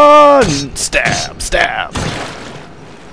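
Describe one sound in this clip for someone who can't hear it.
A blade stabs into bones with sharp impacts.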